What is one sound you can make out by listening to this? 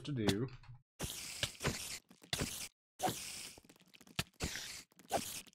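A sword strikes spiders again and again.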